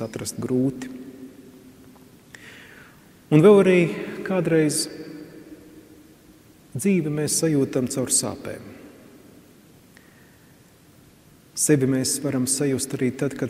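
A man speaks calmly through a microphone, with pauses, in a large echoing hall.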